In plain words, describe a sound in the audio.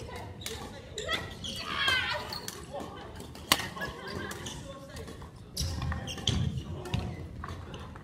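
A racket smacks a shuttlecock in a large echoing hall.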